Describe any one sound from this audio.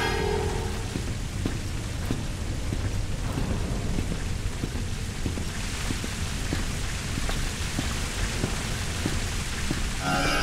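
Footsteps clank steadily on a metal grating.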